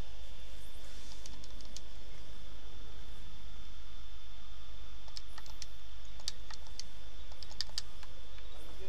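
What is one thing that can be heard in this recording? Short menu clicks tick several times in quick succession.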